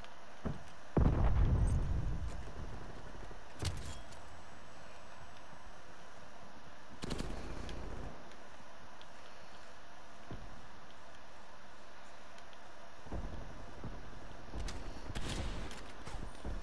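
A rifle fires loud, booming shots that echo away.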